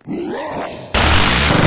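A gun fires in a loud burst.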